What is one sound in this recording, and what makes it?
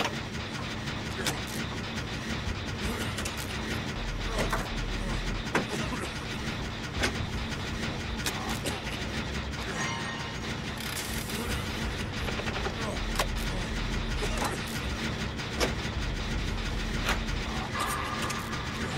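A generator engine rattles and clanks steadily.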